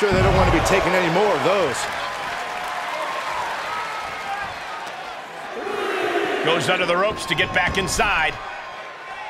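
A crowd cheers throughout in a large arena.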